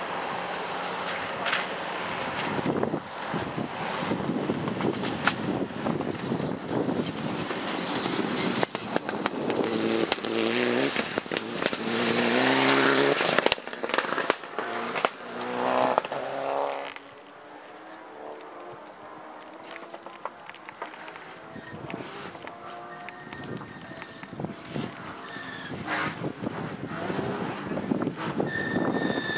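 Gravel crunches and sprays under speeding tyres.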